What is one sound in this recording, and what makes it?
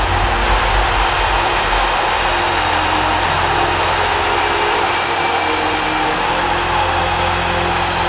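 Flames roar steadily.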